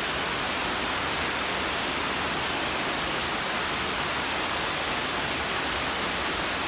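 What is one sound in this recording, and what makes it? Heavy rain pours steadily onto dense leaves outdoors.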